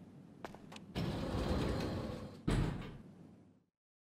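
Elevator doors slide shut with a heavy thud.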